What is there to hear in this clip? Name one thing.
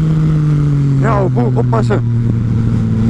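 A motorcycle exhaust pops and crackles.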